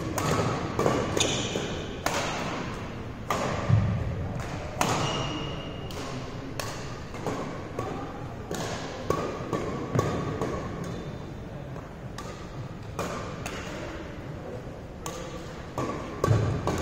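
Shuttlecocks are struck with rackets in sharp pops that ring through a large echoing hall.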